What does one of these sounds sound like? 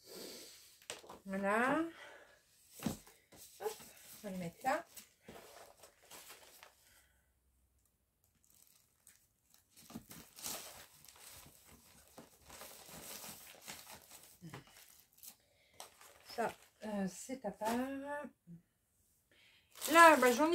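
Paper sheets rustle and slide as they are handled.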